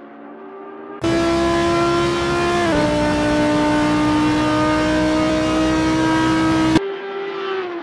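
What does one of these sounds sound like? A racing car engine roars loudly up close and drops in pitch as it shifts gear.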